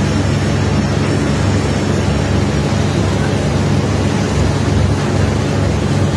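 Water sprays and hisses from a hose.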